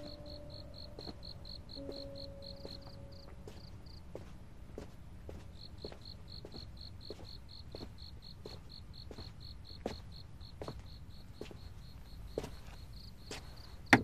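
A man's footsteps tap slowly and steadily on a hard floor.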